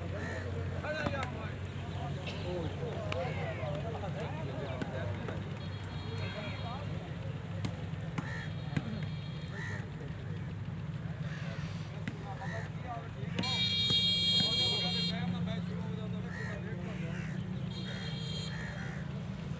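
A crowd of men shout and call out outdoors.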